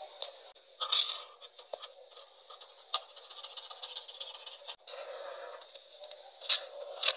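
A felt-tip marker squeaks and scratches softly on paper.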